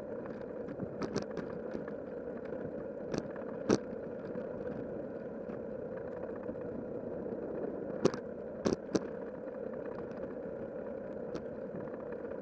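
A bicycle frame rattles and knocks over bumps now and then.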